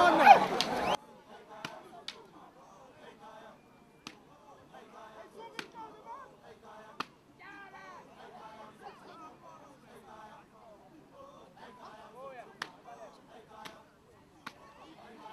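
A crowd murmurs and calls out outdoors.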